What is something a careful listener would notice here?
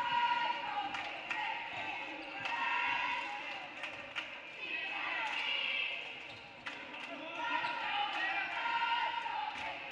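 Players shout and call out to each other in an echoing hall.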